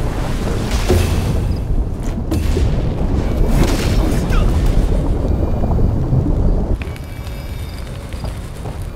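Fighters clash with weapons in a noisy battle.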